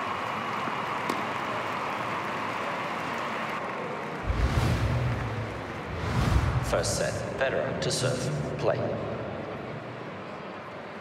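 A crowd murmurs in an arena.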